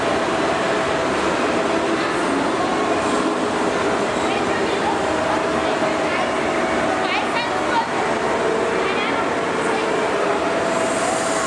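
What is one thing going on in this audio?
A crowd of people chatters throughout a large echoing hall.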